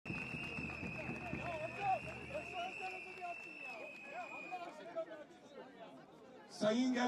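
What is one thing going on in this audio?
A crowd murmurs and calls out nearby.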